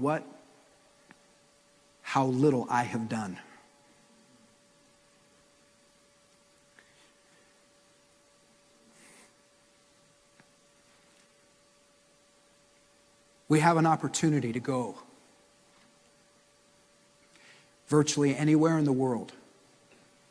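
A man speaks with emphasis through a microphone, with long pauses.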